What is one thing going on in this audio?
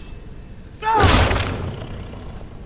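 A blade strikes with a sharp clash.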